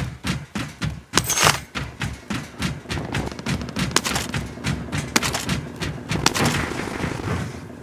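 Footsteps clang quickly on a metal walkway.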